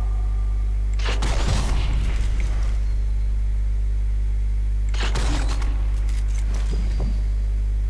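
A sniper rifle fires single loud shots that echo.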